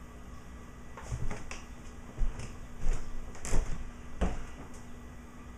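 Footsteps and knocks thump close by as a man comes near.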